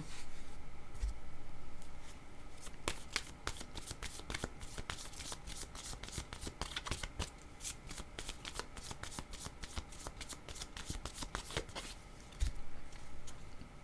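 Cards slap softly onto a table.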